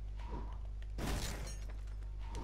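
Small plastic pieces clatter as something breaks apart.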